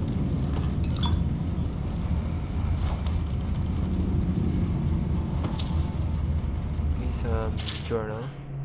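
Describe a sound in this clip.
Paper pages rustle as a journal is opened.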